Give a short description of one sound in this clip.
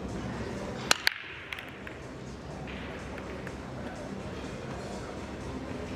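Pool balls knock together and roll across the table.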